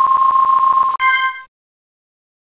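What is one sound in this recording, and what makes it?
A video game plays a short chime that quickly fades.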